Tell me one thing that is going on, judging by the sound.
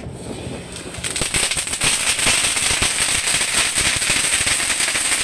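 A fountain firework gushes with a loud hissing roar and crackles outdoors.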